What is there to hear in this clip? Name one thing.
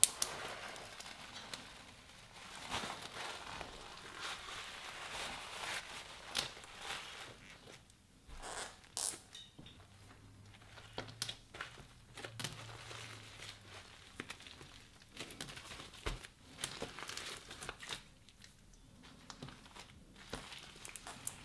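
A plastic bag crinkles and rustles as hands squeeze it.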